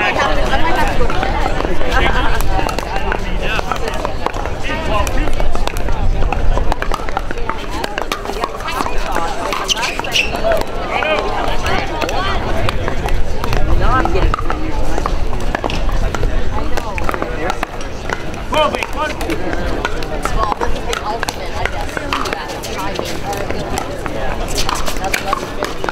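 A crowd of spectators chatters in the background outdoors.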